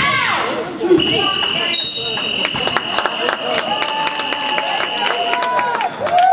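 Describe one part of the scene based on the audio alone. A referee's whistle blows a long, steady blast.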